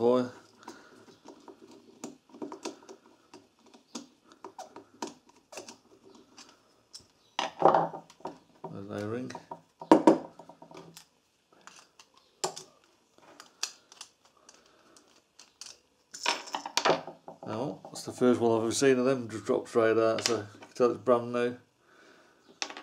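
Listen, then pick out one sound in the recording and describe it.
Small metal parts click and clink against each other.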